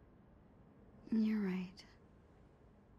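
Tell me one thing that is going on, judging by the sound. A young woman answers briefly and softly, close by.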